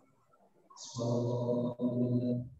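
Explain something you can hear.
A man calls out loudly through a microphone.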